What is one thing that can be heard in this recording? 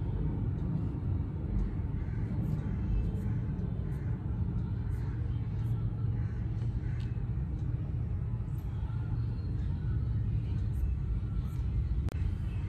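Fingertips tap lightly on a touchscreen.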